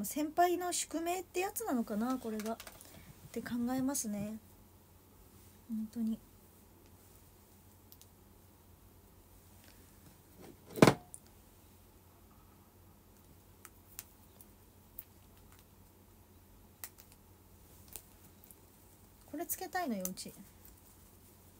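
A young woman speaks softly and casually, close by.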